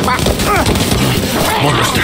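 A chicken clucks close by.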